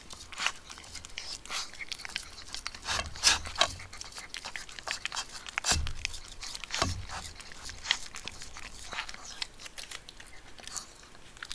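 A dog crunches and chews food from a bowl.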